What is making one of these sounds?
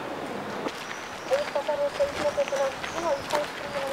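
Footsteps shuffle over cobblestones.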